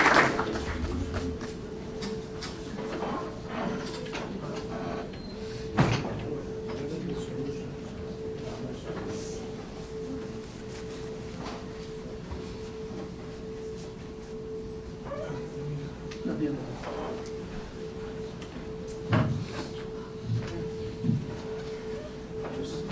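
A man speaks quietly and haltingly into a microphone.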